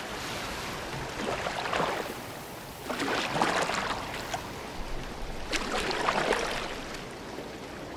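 Oars splash and swish through water in slow strokes.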